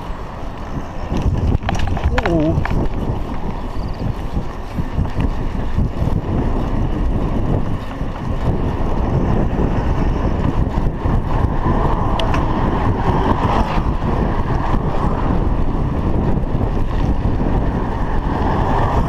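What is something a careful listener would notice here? Bicycle tyres rumble over a rough road.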